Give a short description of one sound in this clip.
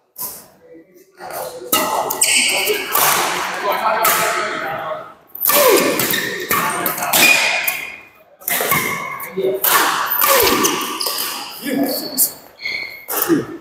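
Sports shoes squeak and scuff on a hard court floor.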